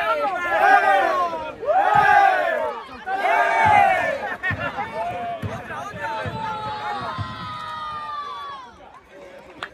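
A group of young men chant and shout together loudly, close by.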